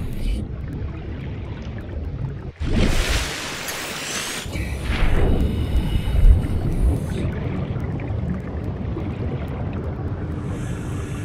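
Muffled underwater rumbling runs throughout.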